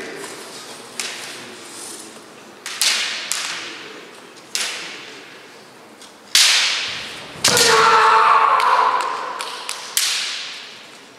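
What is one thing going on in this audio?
Bamboo swords clack sharply against each other and against armour.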